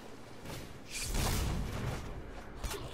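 A magical whoosh sweeps past.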